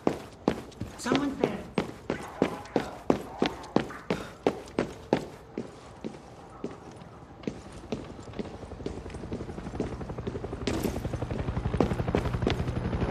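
Footsteps tap quickly on a hard stone floor.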